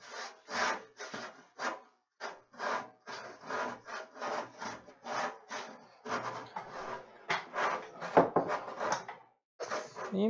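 A hand saw cuts through wood with quick, steady strokes.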